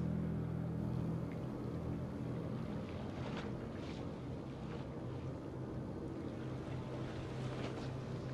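Sea waves wash and rumble steadily in the distance.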